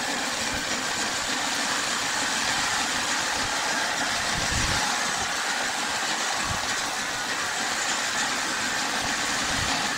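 A large band saw whines steadily as it cuts through a log.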